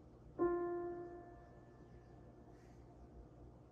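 A piano note rings out and slowly fades.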